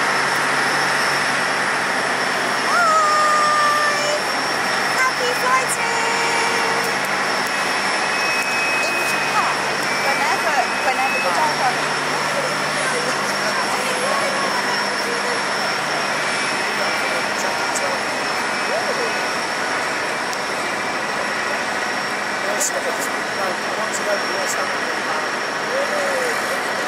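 A jet aircraft's engines whine and roar steadily nearby.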